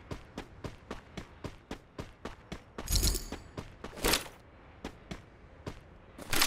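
Quick footsteps run steadily over a hard floor.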